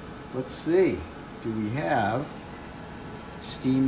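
A metal lid clinks as it is lifted off a pot.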